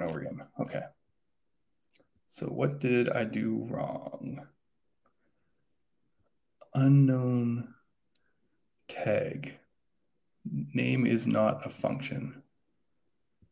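A young man talks calmly into a close microphone, pausing between phrases.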